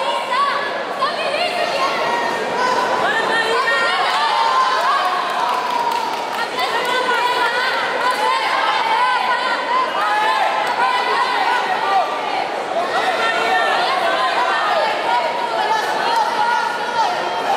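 A crowd of men shouts and cheers from the sides of a large echoing hall.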